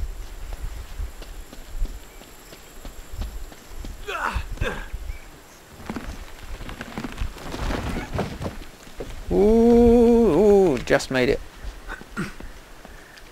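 Footsteps scuff over rock and undergrowth.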